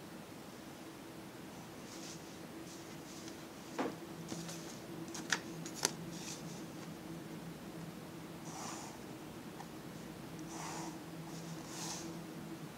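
A graphite pencil scratches across paper.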